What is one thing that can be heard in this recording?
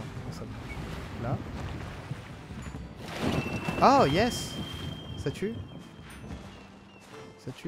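Waves wash gently against a rocky shore.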